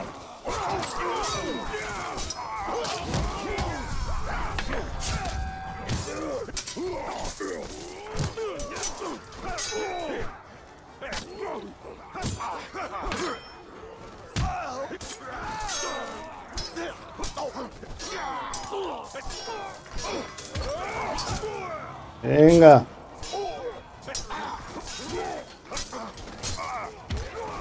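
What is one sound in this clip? Swords clash and strike in quick, repeated blows.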